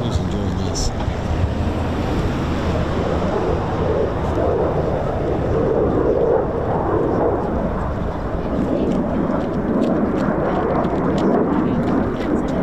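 A distant jet aircraft roars steadily across the sky.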